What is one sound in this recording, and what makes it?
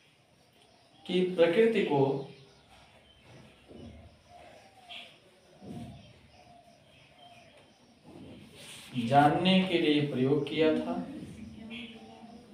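A young man speaks in short, animated bursts close by.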